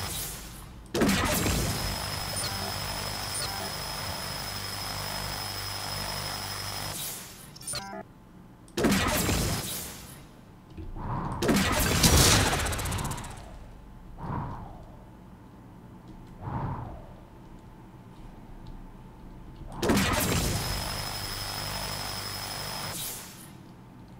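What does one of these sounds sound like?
A buzzing energy beam hisses steadily in long bursts.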